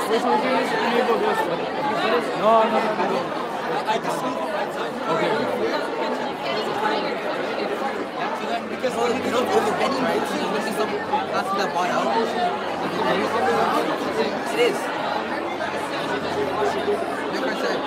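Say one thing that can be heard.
A large crowd of young people chatters loudly in a big echoing hall.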